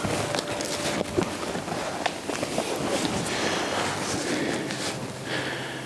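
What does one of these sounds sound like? Dry leaves rustle underfoot as a man shifts and kneels.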